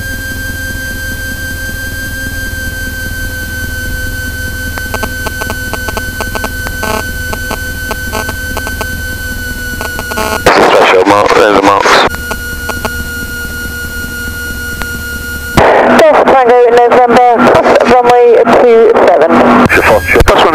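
A small propeller engine drones steadily close by.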